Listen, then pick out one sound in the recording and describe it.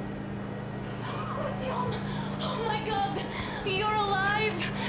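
A young woman speaks with relief and emotion.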